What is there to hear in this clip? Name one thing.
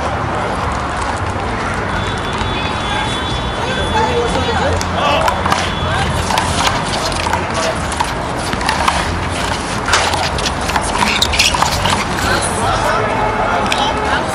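Sneakers scuff and squeak on asphalt.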